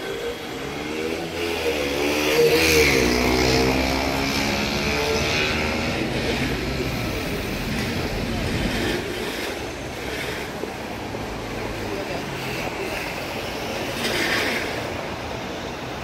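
A helicopter's rotor begins to thump steadily.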